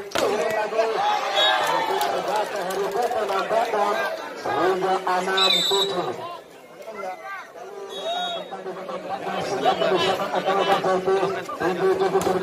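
Young men shout to each other on a court.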